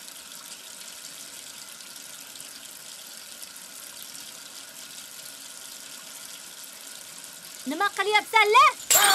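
Dishes clink softly.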